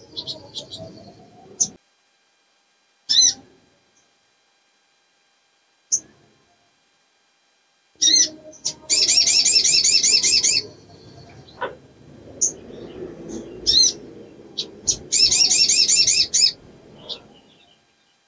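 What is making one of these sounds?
A small songbird chirps and trills rapidly.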